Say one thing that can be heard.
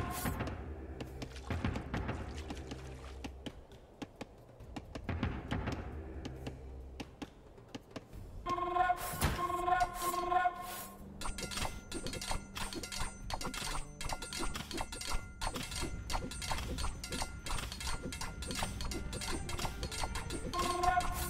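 Short video game sound effects click and chime.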